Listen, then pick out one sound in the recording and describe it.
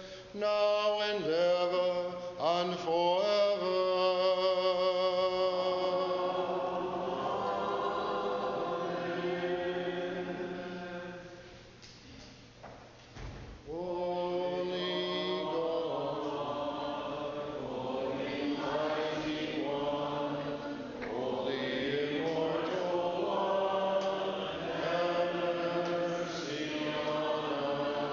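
A man chants a slow, sustained melody in a large echoing hall.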